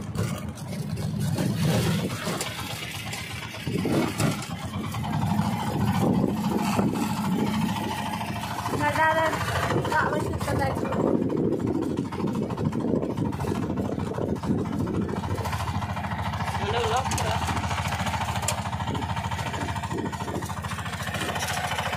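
An auto-rickshaw engine putters steadily while driving.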